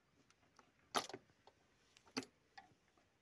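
A small switch clicks.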